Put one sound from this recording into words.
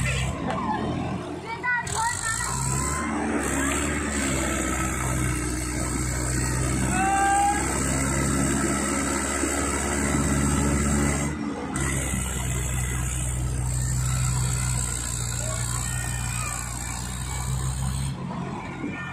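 Tractor engines idle with a steady low rumble.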